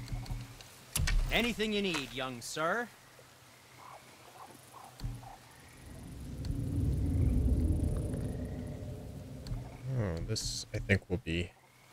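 A young man talks calmly and close into a microphone.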